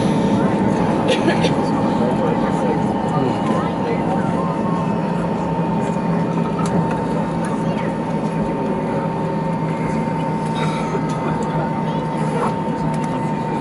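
A jet engine hums and whines steadily as an airliner taxis.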